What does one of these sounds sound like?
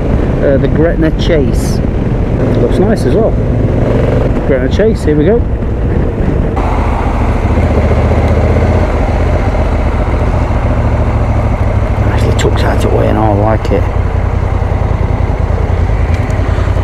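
A motorcycle engine rumbles steadily while riding.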